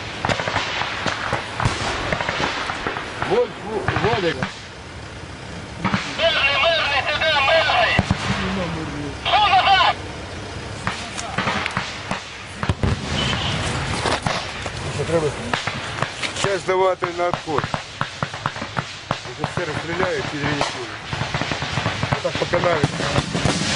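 Rifle shots crack sharply nearby.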